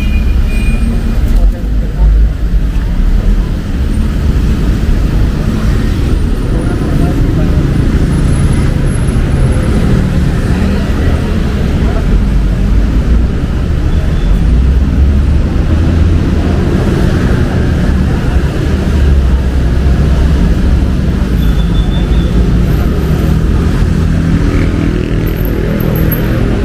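Steady city traffic rumbles nearby outdoors.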